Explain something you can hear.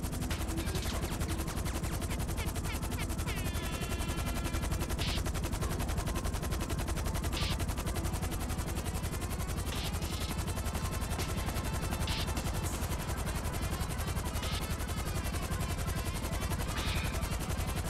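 A jet-powered flying bike roars steadily.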